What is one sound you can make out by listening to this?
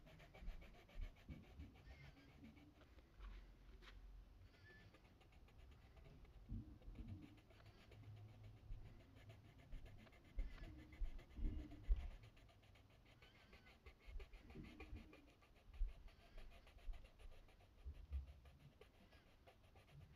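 A coloured pencil scratches softly across paper in quick short strokes.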